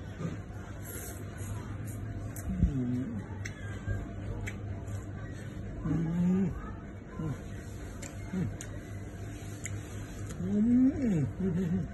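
A young man chews and crunches food close by.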